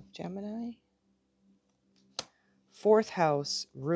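Playing cards are shuffled and tapped by hand.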